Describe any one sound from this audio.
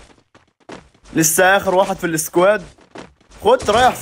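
Footsteps run quickly across a wooden floor.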